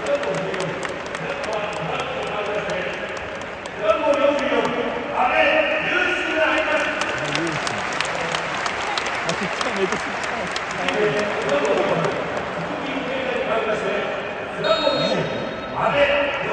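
A large crowd chants and sings loudly in unison, echoing across an open stadium.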